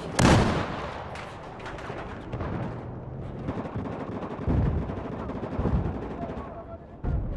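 Gunfire booms loudly in short bursts.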